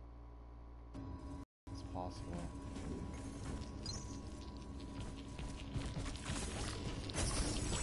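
Loud clashing and rumbling sound effects of a fight play, with heavy impacts.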